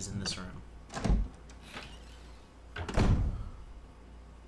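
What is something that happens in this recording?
A heavy wooden door creaks open with a dull thud.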